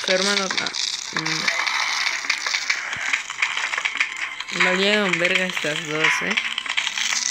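A boy speaks with animation close to a microphone.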